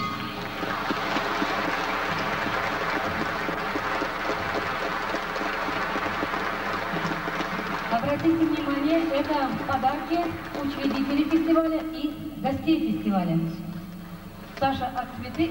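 An acoustic guitar is strummed through loudspeakers.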